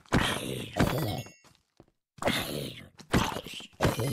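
A sword strikes a creature with sharp thuds.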